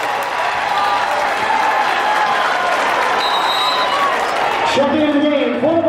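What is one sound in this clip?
A large crowd cheers and claps.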